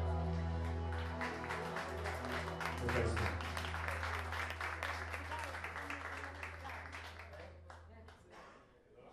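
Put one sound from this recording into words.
A live band plays a song loudly, then stops.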